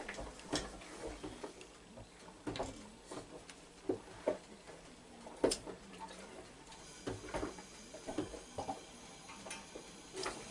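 A pressure lantern is pumped with quick squeaky strokes.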